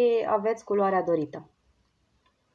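A young woman speaks close to the microphone with animation.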